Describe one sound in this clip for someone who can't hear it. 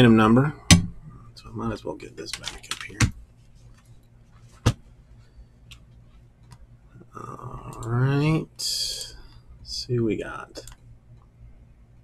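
Fingers tap on a computer keyboard.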